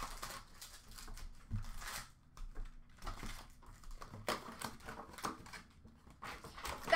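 Card packs rustle and slide as hands sort them into a tray.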